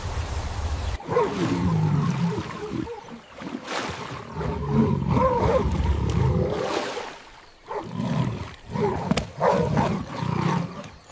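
Wild dogs yelp and whine close by.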